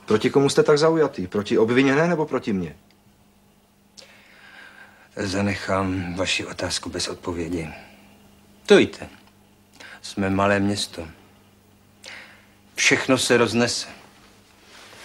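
A middle-aged man speaks calmly and firmly nearby.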